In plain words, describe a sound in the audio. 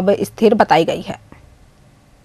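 A young woman speaks clearly and steadily into a microphone.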